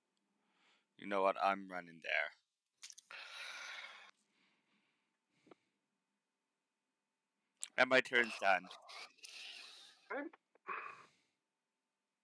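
A man speaks casually into a close microphone, in short bursts.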